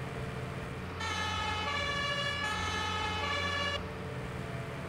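A fire engine's horn sounds briefly.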